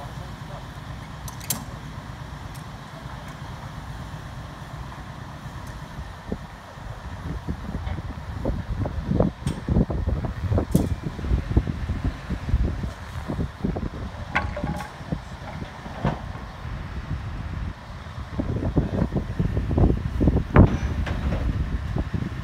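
A crane's engine hums steadily.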